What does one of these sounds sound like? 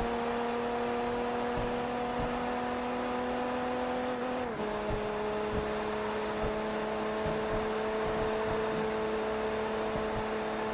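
A race car engine whines at high speed, dropping in pitch as the gear shifts up.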